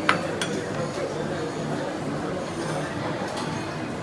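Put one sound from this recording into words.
Metal tongs clink against a tray.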